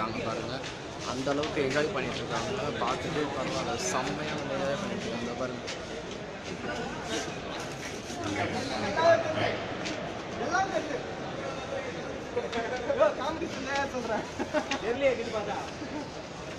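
Men nearby talk and shout excitedly.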